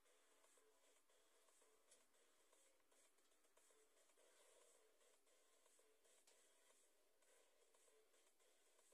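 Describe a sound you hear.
Light electronic music plays from a television.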